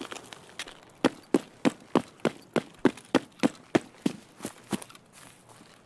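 Footsteps thud in a quick, steady rhythm.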